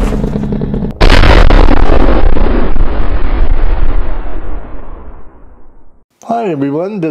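An explosion booms and rumbles away.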